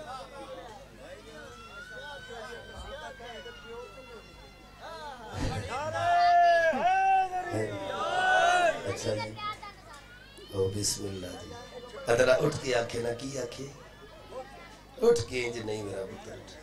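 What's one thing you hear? A man recites in a singing voice into a microphone, heard through loudspeakers.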